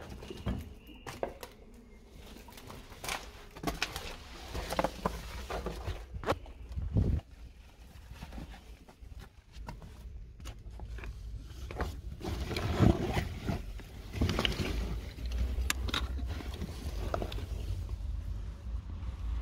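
Footsteps crunch and scrape over loose rubble and dry leaves.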